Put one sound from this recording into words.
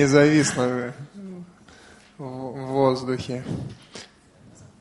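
A man speaks loudly into a microphone, close by.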